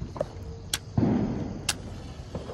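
A lighter flame flares with a short whoosh.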